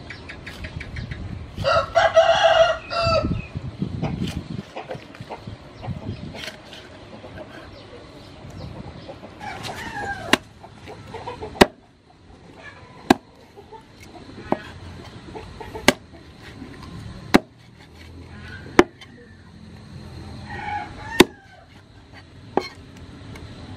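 A cleaver chops down hard on a wooden board, again and again.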